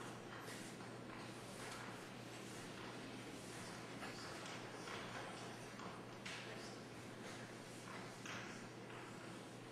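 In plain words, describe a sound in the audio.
Chalk scratches and taps on a blackboard in short strokes.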